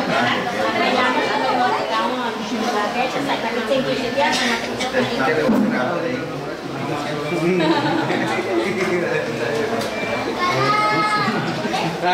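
A middle-aged woman talks animatedly close by.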